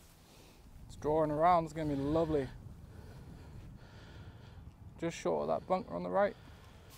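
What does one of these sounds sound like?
A man speaks casually nearby outdoors.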